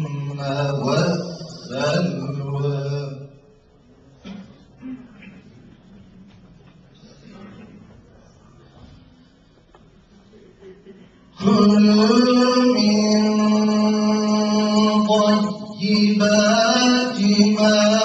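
A man chants in a long, melodic voice close to a microphone, pausing for breath between phrases.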